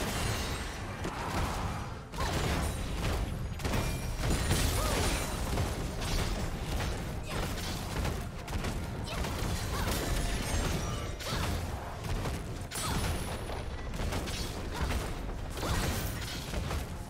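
Spell effects burst and crackle in a game fight.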